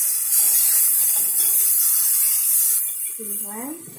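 A spoon scrapes and stirs food in a pan.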